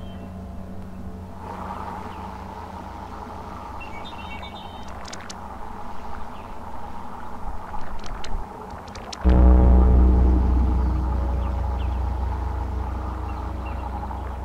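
Rain pours down outside.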